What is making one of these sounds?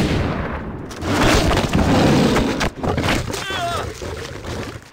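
A tiger snarls and roars up close.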